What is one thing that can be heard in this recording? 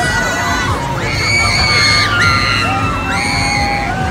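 Young people on a fairground ride scream loudly.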